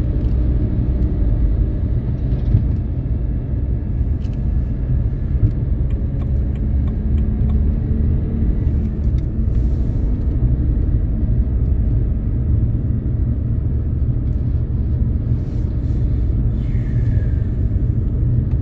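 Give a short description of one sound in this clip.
A car's engine hums steadily with road noise rumbling inside the cabin at highway speed.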